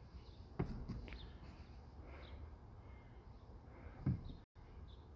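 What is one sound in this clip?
Shoes knock against a wooden climbing board.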